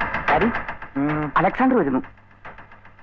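A man speaks loudly at close range.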